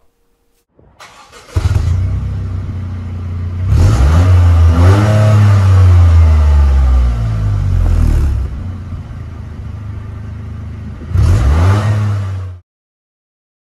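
A car engine starts and idles with a deep exhaust rumble.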